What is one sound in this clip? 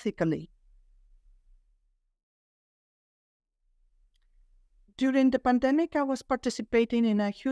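A middle-aged woman speaks calmly and clearly over an online call.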